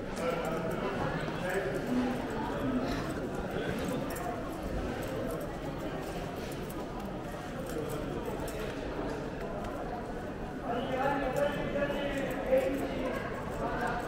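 A crowd of men and women chatters all around in a large echoing hall.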